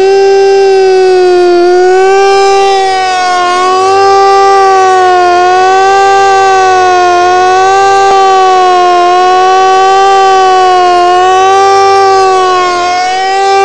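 A siren wails loudly, its pitch gently rising and falling.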